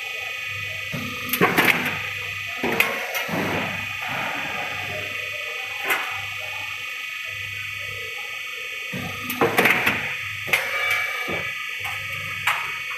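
A roll forming machine hums and whirs steadily.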